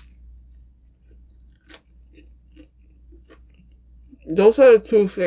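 A young woman chews food softly close to a microphone.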